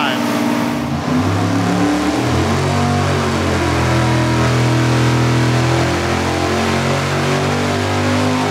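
A powerful engine roars loudly and climbs steadily in pitch as it revs up.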